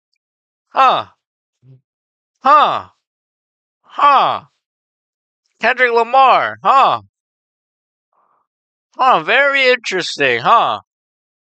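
A young man speaks with animation in short bursts into a close microphone.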